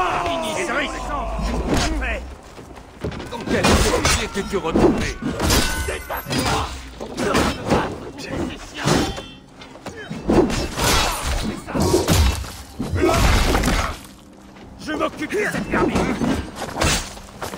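Men grunt and shout while fighting.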